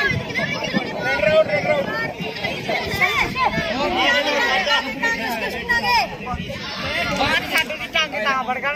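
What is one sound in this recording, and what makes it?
Many children shout and cheer excitedly outdoors.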